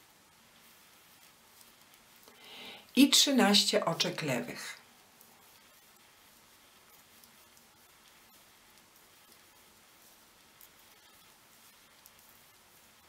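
A crochet hook rustles softly through yarn.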